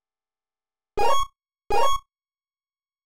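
Short electronic game blips sound as a play is picked.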